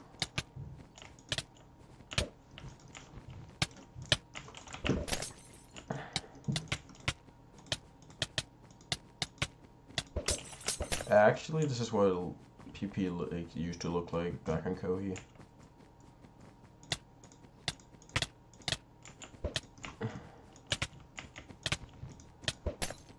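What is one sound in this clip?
Sword hits land with quick, sharp smacks over and over.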